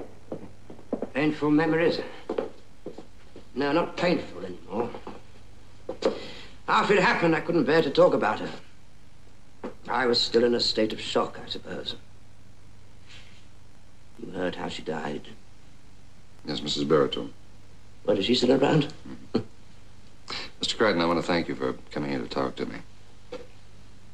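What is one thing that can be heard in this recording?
A man speaks calmly and clearly, close by, with pauses between phrases.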